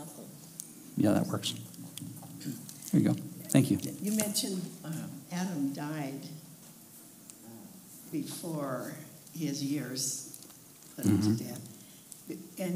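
An older woman speaks calmly into a microphone, heard through a loudspeaker.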